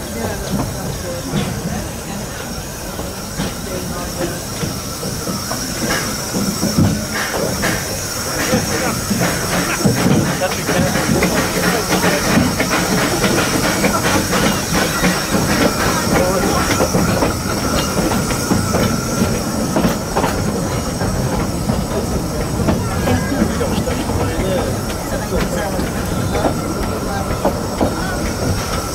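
A steam locomotive chuffs up ahead.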